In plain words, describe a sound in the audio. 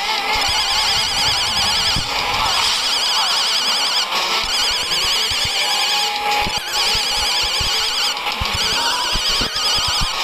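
Upbeat retro video game music plays throughout.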